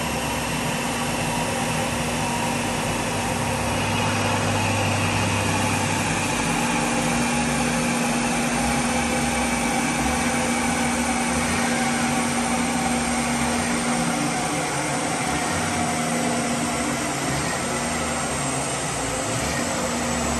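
A small truck engine drones steadily at high speed.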